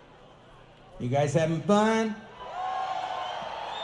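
A man speaks loudly into a microphone on a stage with some echo.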